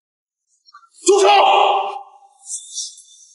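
A man speaks sharply, close by.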